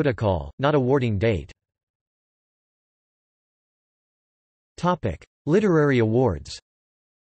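A man reads aloud slowly, with long pauses.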